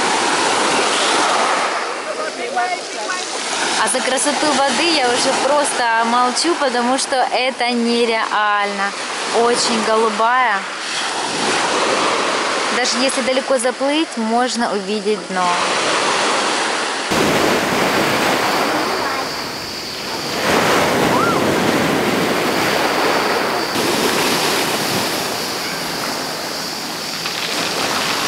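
Small waves wash and break onto a pebble shore.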